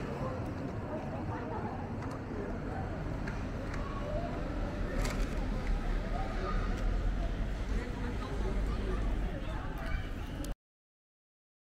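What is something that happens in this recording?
Many people chatter on a busy outdoor street.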